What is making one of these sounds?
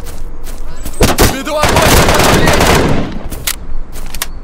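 A rifle fires a rapid burst of shots.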